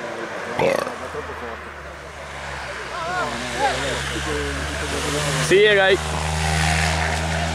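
Another car engine approaches and revs loudly.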